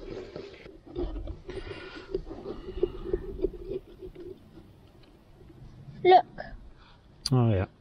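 A knife carves and scrapes through pumpkin rind.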